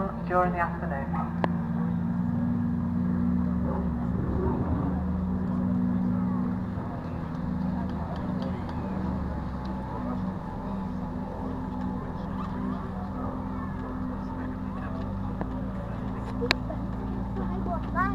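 A powerboat's engine roars steadily in the distance across the water.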